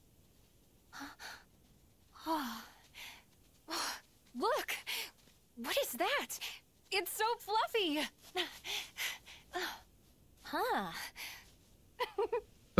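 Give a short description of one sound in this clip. A young woman speaks with excitement and wonder.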